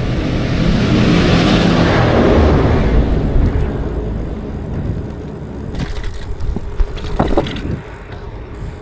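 Bicycle tyres rattle over paving stones.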